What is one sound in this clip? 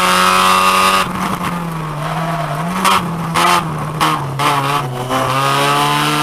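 A car engine drops in pitch and sputters as the driver lifts off.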